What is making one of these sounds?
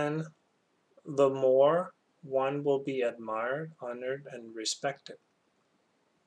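A middle-aged man speaks calmly into a microphone, reading out.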